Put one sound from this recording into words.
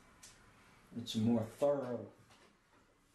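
An elderly man speaks briefly and calmly, close by.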